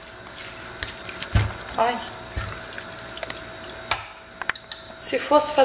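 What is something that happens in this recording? Food sizzles and bubbles in a pan.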